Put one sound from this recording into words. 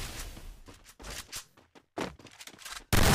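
A shotgun fires several loud shots.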